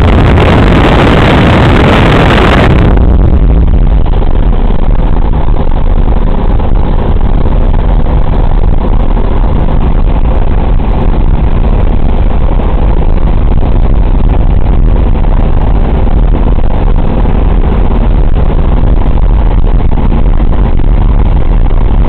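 Wind roars past an open hatch of an aircraft.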